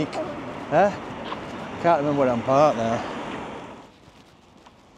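A middle-aged man talks animatedly close to the microphone, outdoors.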